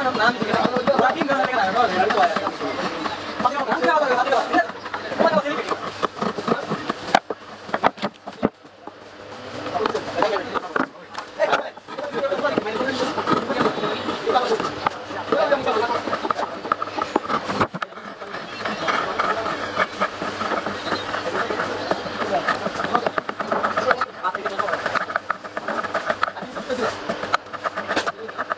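A blade scrapes and shaves wood in short strokes.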